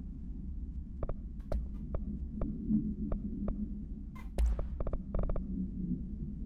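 Short interface clicks tick in quick succession.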